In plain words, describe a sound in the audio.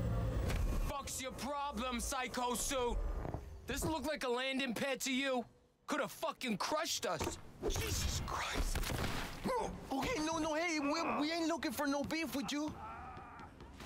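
Men speak aggressively, close by.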